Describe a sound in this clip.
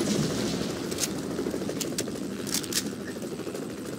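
A video game rifle is reloaded with metallic clicks.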